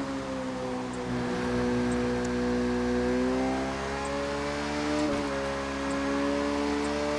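A motorcycle engine hums steadily and rises in pitch as it speeds up.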